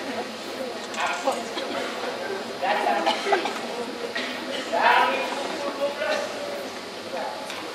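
A man speaks animatedly through a microphone, echoing in a hall.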